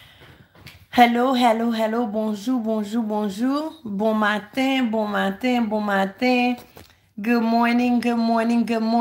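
A woman sings close by.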